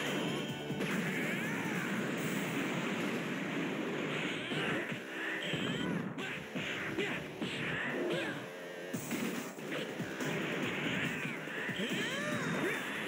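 Energy blasts crackle and roar loudly.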